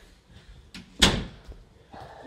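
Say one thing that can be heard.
A closet door shuts with a thump.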